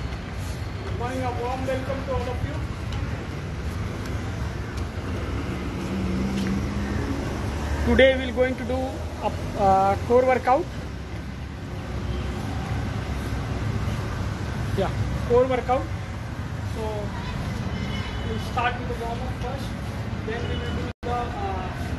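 A young man speaks close by, explaining with animation.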